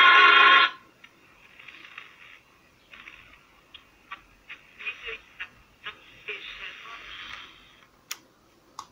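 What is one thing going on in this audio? A small radio crackles and hisses with static in bursts while being tuned.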